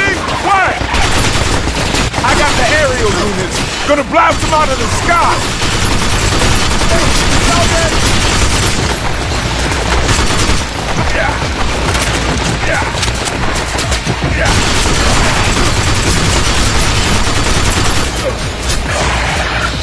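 Rapid gunfire rattles and cracks again and again.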